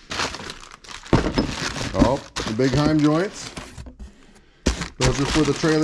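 A plastic bag crinkles as a hand handles it.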